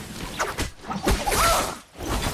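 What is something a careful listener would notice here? A blade whooshes through the air and clangs against metal.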